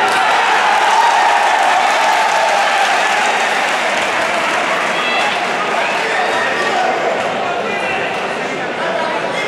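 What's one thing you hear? A crowd cheers and shouts loudly throughout.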